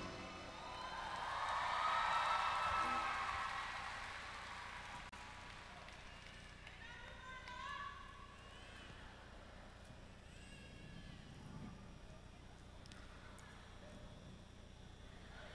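A young woman sings softly into a microphone.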